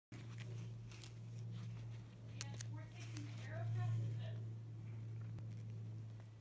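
Fingers rustle against a fabric backpack.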